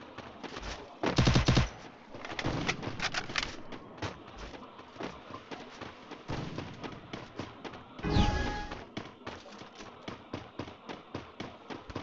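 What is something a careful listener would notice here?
Footsteps run quickly over stone paving.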